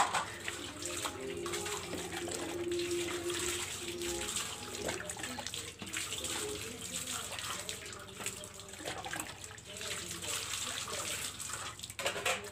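Metal dishes clink against each other.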